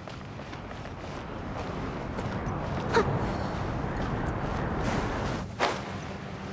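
A game character clambers up rock with soft scuffing steps.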